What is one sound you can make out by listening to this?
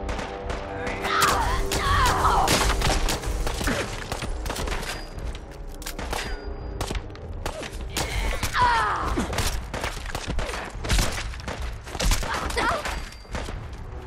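A man screams and yells in pain.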